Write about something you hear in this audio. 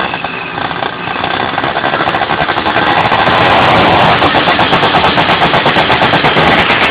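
A small kart engine revs loudly and rattles close by.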